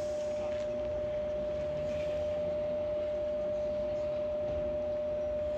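A stationary electric train hums steadily nearby.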